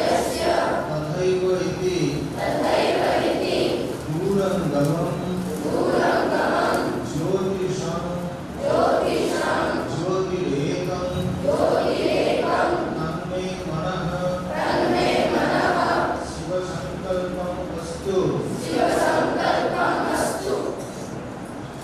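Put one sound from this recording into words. A man chants steadily through a microphone in a large echoing hall.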